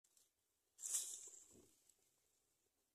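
Nestlings shuffle and rustle in a nest of dry straw.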